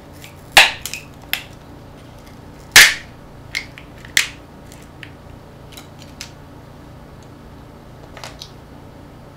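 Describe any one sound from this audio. Small metal parts click and clatter in someone's hands.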